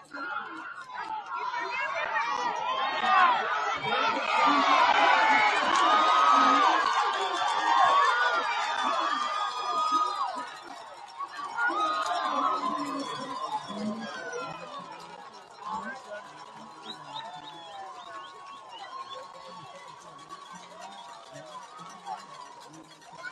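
A crowd cheers and shouts outdoors, swelling loudly and then dying down.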